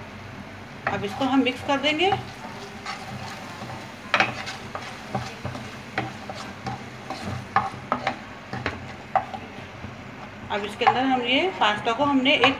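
Thick sauce sizzles and bubbles in a hot pan.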